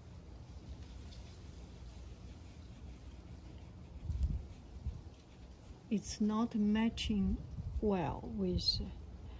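A brush dabs and strokes softly on paper.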